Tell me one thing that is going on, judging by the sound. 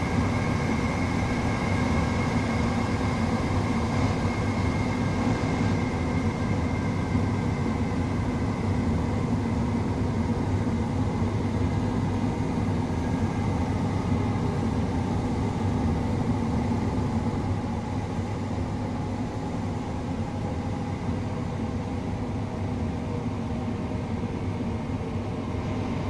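A train rumbles steadily along the track, heard from inside a carriage.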